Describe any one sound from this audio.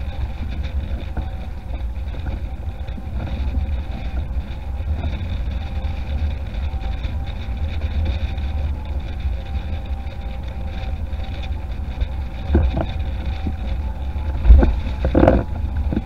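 Water rushes and hisses beneath a board.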